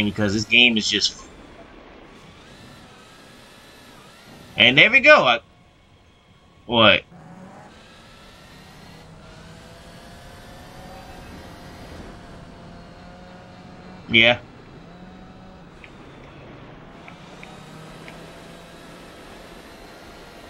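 A racing car engine revs and whines, rising and falling with gear changes.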